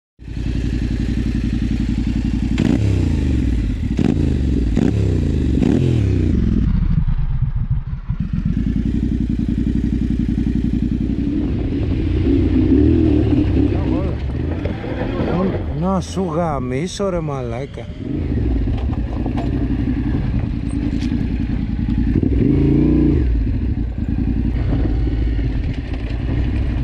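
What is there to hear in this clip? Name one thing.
A motorcycle engine idles and revs close by.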